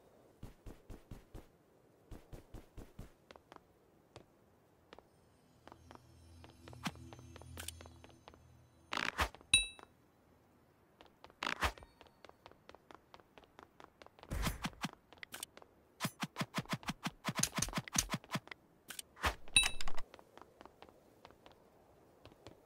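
Quick footsteps patter steadily across hard blocks.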